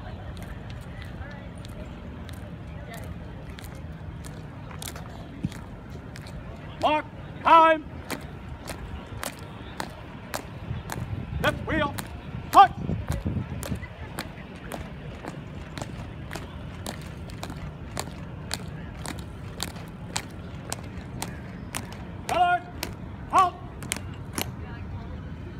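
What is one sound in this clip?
Boots tap on pavement in a steady marching rhythm.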